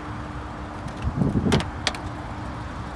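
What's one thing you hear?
A car door latch clicks and the door swings open.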